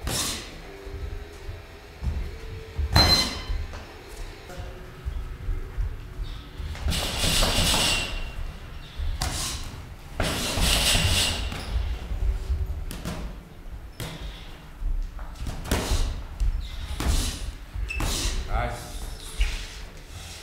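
Sneakers squeak and shuffle on a padded floor.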